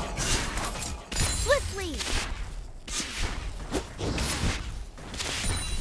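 Game sound effects of spells and attacks crackle and boom.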